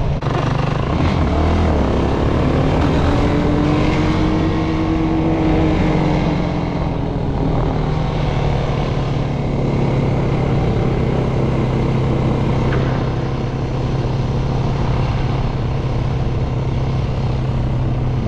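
A quad bike engine drones loudly up close, revving and changing pitch.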